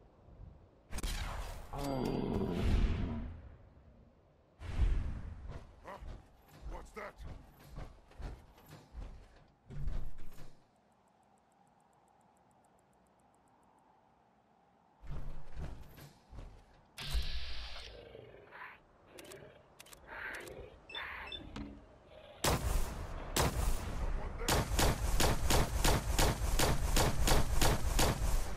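A laser rifle fires rapid shots.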